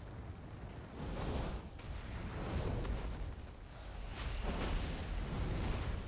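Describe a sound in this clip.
Magic spells whoosh and burst with loud crackling blasts.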